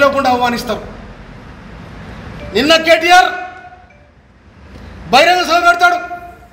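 An elderly man shouts forcefully in loud bursts, close by.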